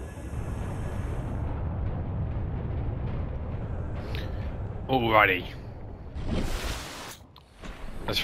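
Water swirls and rushes underwater.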